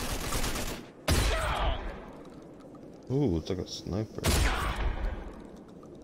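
Shotgun blasts go off, loud and sudden, several times.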